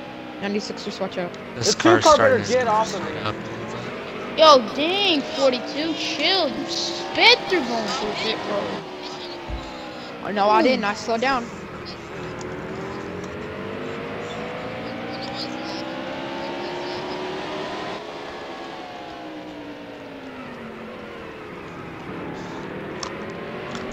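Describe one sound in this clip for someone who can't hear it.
A race car engine roars steadily, its pitch rising and falling with the gears.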